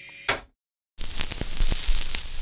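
Music plays from a spinning vinyl record.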